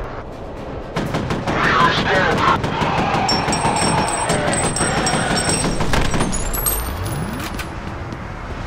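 Rapid automatic gunfire rattles in loud bursts.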